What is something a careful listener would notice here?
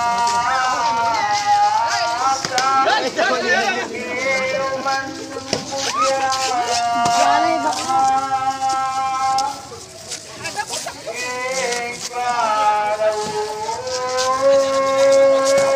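A crowd sings a slow chant outdoors.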